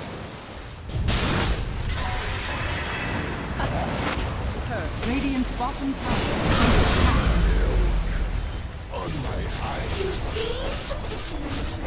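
Magic blasts and clashes of fighting burst and crackle in a video game battle.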